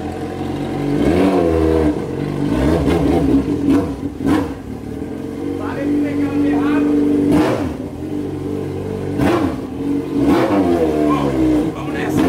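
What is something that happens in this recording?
A motorcycle engine revs up briefly and settles again.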